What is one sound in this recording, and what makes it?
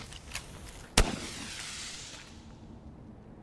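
A fiery blast roars and fades away.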